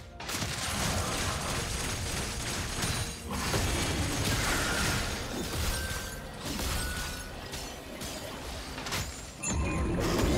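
Game spell effects whoosh and crackle as characters fight.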